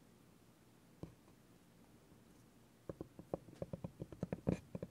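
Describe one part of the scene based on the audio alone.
A rubber ball with soft spikes rolls and taps on a wooden board.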